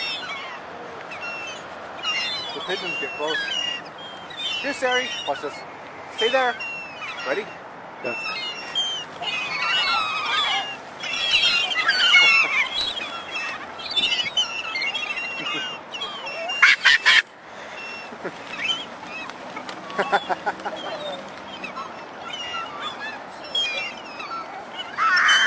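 Seagulls squawk and cry all around.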